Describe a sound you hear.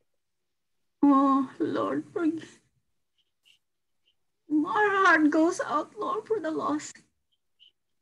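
A woman speaks calmly over an online call, in two short bursts.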